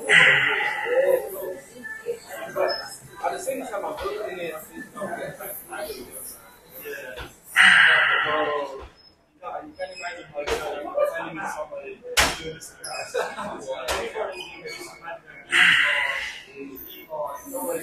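A weight machine clanks softly as its weights rise and fall.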